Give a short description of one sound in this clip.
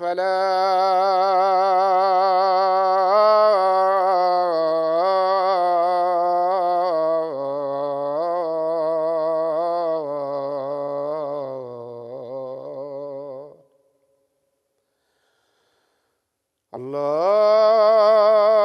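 A man chants the call to prayer in a loud, drawn-out, melodic voice through a microphone.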